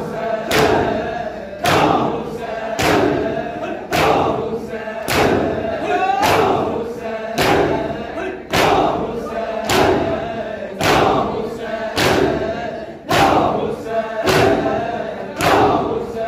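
A crowd of young men chant loudly together.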